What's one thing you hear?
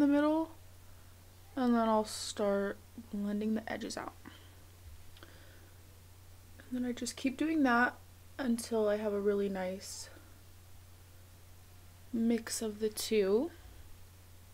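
A young woman talks calmly close to a microphone, in short bursts.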